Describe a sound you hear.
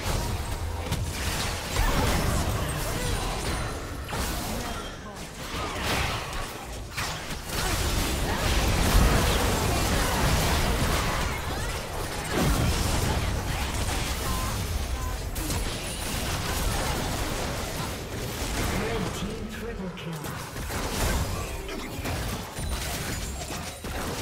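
Spells and weapons clash and crackle in a hectic battle.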